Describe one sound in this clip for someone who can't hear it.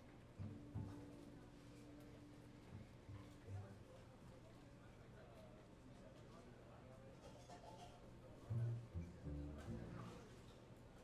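A double bass plucks deep notes.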